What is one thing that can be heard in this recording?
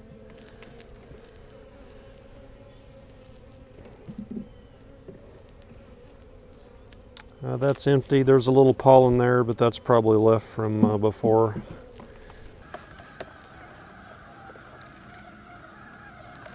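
Bees hum steadily close by.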